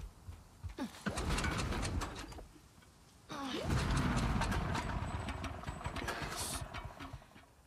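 A generator's pull cord is yanked and its engine sputters without starting.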